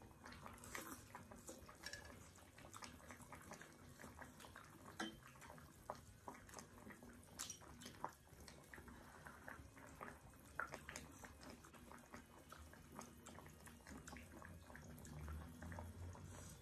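A young woman slurps and chews food noisily close up.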